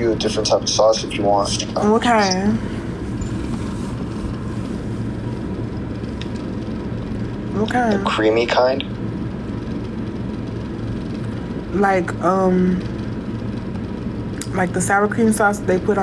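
A young woman speaks softly and close to the microphone in short bursts.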